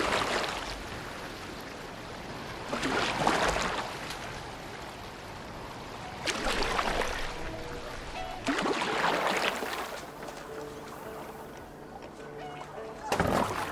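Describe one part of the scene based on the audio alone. Oars splash through water in regular strokes.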